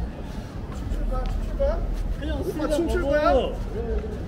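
Footsteps scuff on pavement nearby.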